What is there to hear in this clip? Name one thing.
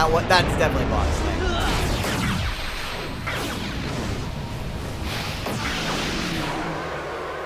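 A magical fire blast roars and rumbles.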